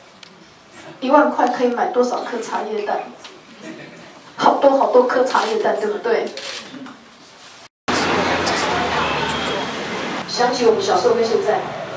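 A woman speaks calmly into a microphone, heard through a loudspeaker.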